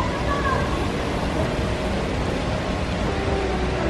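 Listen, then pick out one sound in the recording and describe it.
Fountain jets splash water into a pool.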